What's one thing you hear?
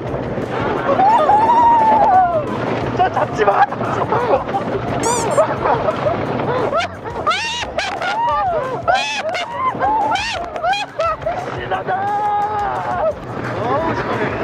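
A man screams and shouts excitedly.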